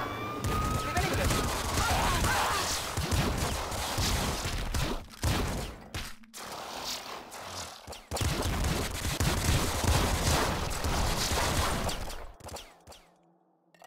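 Game explosions boom loudly.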